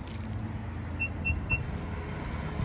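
A car beeps three short times.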